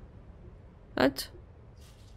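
A switch clicks sharply.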